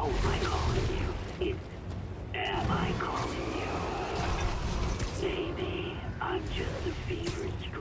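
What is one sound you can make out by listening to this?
Wind rushes past steadily with a low roar.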